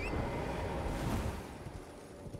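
A magical shimmer rings out and fades away.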